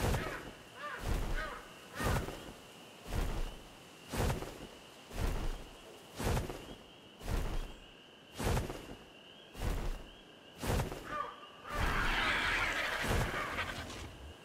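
Large wings flap in slow, regular beats.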